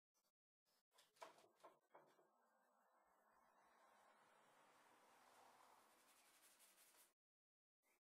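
A cloth rubs against a wooden rail.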